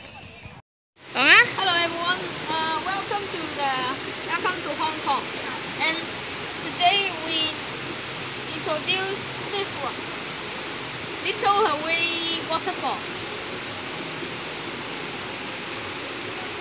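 Water rushes steadily over a weir.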